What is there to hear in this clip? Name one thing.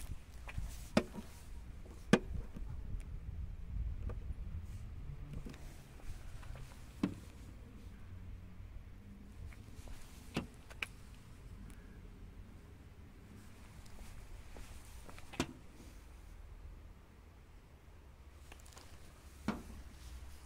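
A measuring probe clicks sharply against a car's metal body now and then.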